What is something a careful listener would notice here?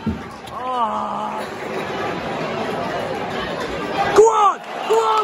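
A large crowd roars and murmurs in an open stadium.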